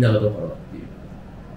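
A young man speaks casually up close.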